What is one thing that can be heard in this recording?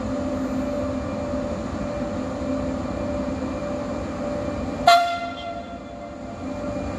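A train rolls slowly into a station with a low rumble.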